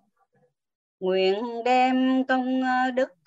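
An elderly man chants in a steady singing voice.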